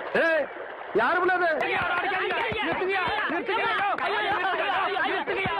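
Several men shout and yell loudly in a scuffle.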